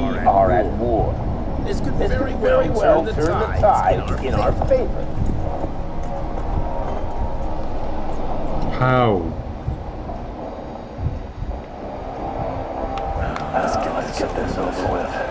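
A young man talks casually close to a microphone.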